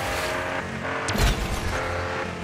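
A loud whoosh bursts as a car boosts forward.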